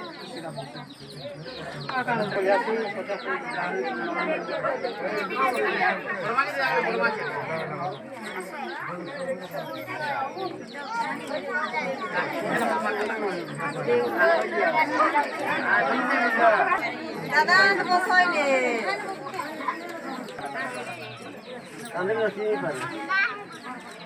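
A crowd of women and men chatter and call out close by.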